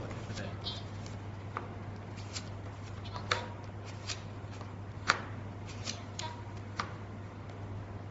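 Playing cards are dealt and flipped onto a cloth table with soft taps.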